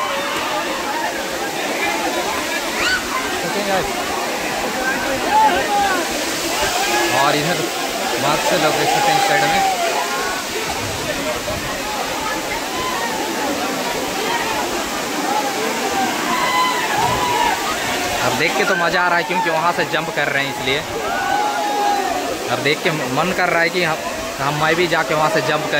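People splash about in water.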